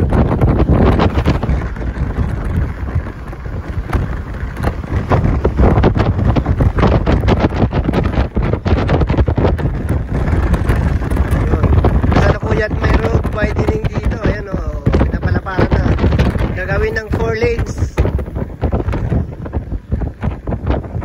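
A vehicle's engine and tyres rumble steadily on the road.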